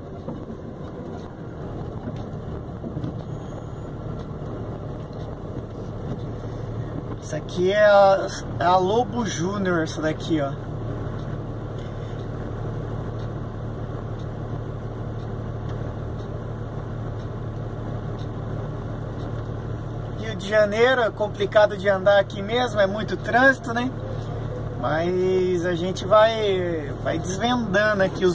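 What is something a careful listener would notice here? A car engine idles nearby with a low, steady hum.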